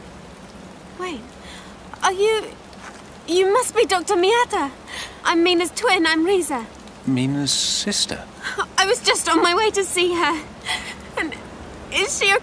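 A young man speaks tensely nearby.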